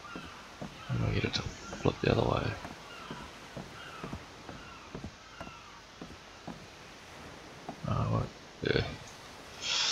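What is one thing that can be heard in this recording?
Wooden building pieces thump heavily into place.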